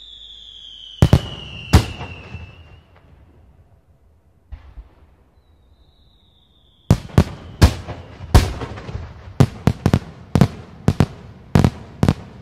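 Fireworks burst with loud bangs and crackles.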